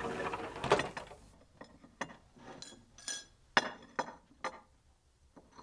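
Dishes clink as they are set down on a table.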